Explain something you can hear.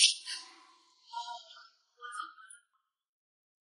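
A young woman answers lightly and briefly.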